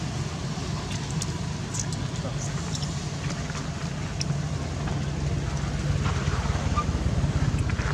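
A baby monkey scrambles through short grass with soft rustling.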